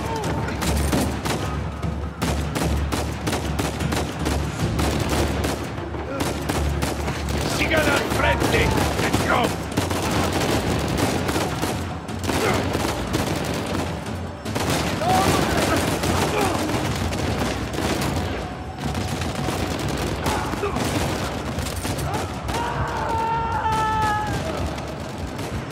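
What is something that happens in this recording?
Gunshots crack again and again in an echoing hall.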